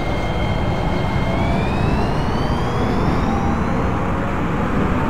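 An electric train motor whines, rising in pitch as it speeds up.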